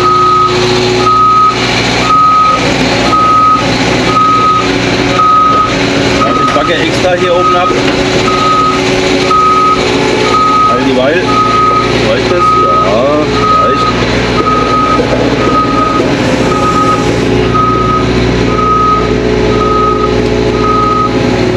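An excavator engine rumbles steadily from inside the cab.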